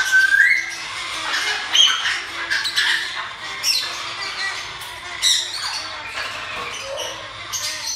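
A parrot screeches loudly.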